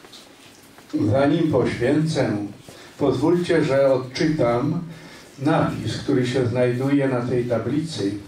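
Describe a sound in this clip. A man speaks calmly through a microphone and loudspeaker in an echoing hall.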